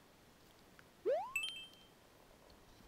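A video game character makes a rising springy jump sound.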